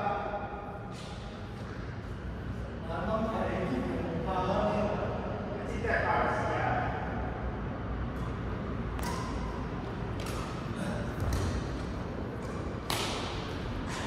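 A shuttlecock is struck by rackets with sharp pops in a large echoing hall.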